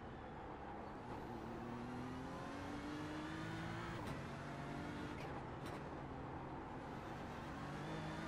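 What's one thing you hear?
A racing car engine revs back up out of a slow corner.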